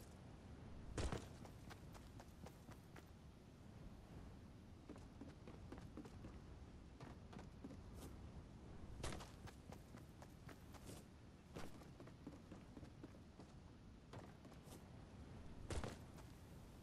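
A character lands with a heavy thud.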